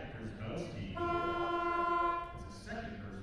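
A loud buzzer blares steadily.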